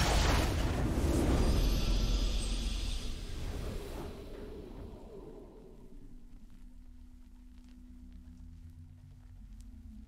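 A triumphant game fanfare plays and fades into soft music.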